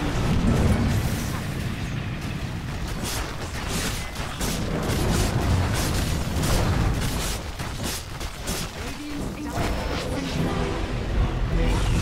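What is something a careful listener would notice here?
Game spells crackle and burst during a battle.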